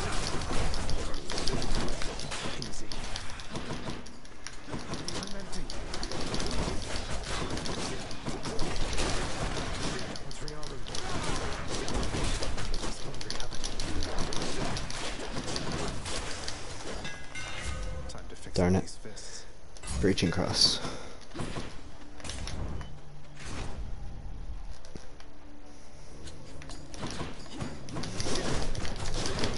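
Fast game sound effects of slashes, strikes and explosions clash rapidly.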